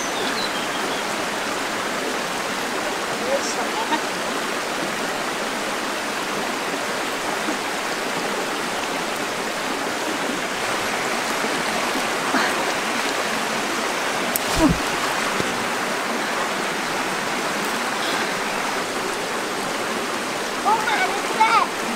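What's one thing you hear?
A stream flows steadily over rocks.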